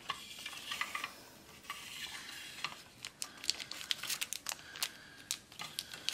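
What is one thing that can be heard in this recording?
Plastic scrapes softly as a case lid slides.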